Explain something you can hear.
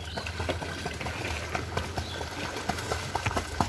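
A small dog paddles and splashes in the water.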